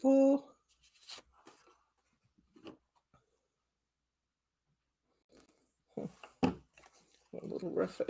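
Card stock rustles and slides in hands.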